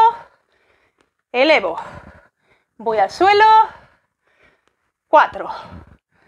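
A young woman speaks in short, energetic bursts close to a microphone.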